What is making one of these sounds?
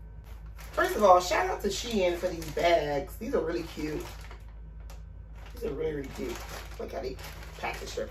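A plastic package crinkles in a woman's hands.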